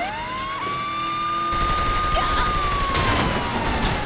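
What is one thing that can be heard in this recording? Metal crunches as cars collide.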